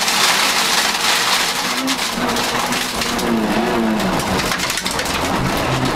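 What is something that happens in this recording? Gravel sprays and rattles under the tyres.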